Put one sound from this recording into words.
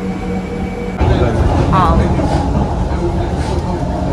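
A train rumbles steadily around the listener.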